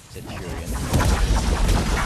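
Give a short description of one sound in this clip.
A weapon fires an energy blast.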